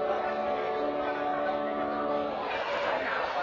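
An organ plays a sustained chord in an echoing hall.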